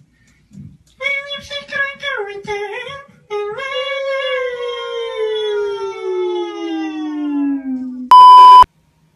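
A young man sings a long, loud note through a microphone that slowly drops in pitch.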